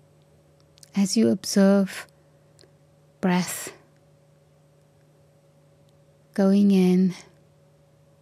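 An elderly woman speaks slowly and calmly into a microphone, with long pauses.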